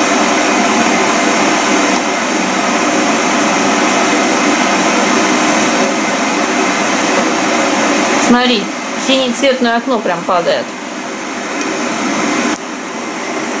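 An electric kettle hisses and rumbles steadily as its water heats.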